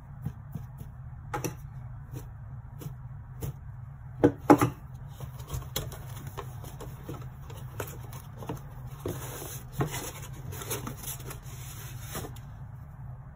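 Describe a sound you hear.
Plastic parts tap and clunk together as they are lifted out of foam.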